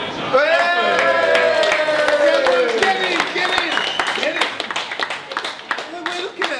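A small crowd claps hands.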